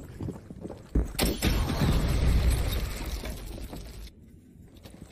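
Debris clatters down.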